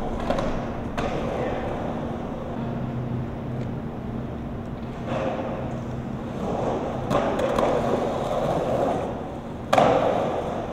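A skateboard clatters as it lands.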